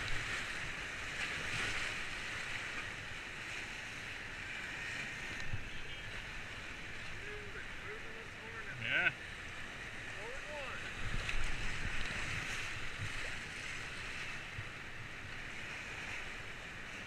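Paddles splash and dig into the water.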